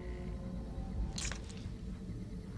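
Clothing and gear rustle as someone gets up from a crouch.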